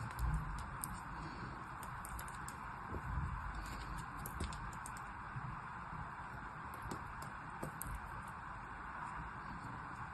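Fingers crumble and rub soft sand with faint crackling.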